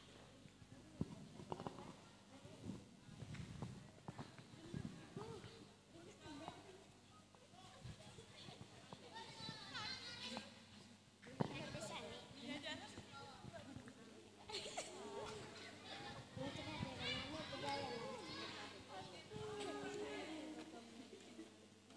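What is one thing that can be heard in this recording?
Young girls talk quietly from a distance.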